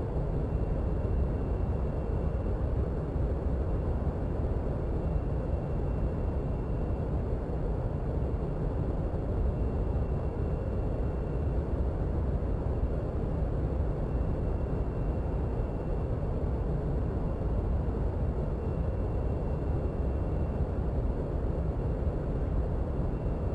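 A jet engine rumbles steadily.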